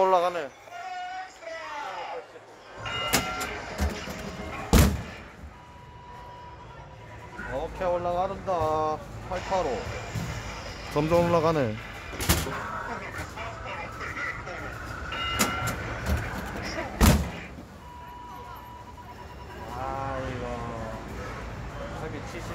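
An arcade machine plays electronic beeps and jingles.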